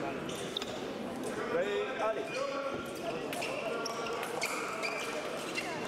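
Fencers' shoes tap and squeak on a metal strip.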